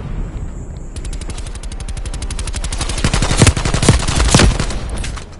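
Rapid automatic gunfire rattles in fast bursts.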